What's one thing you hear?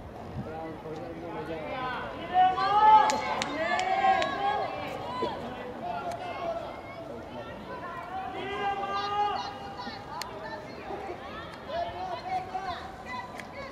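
Several people shout and cheer encouragement outdoors.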